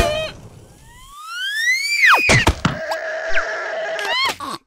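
A cartoon creature squeaks with rising and falling whistling cries.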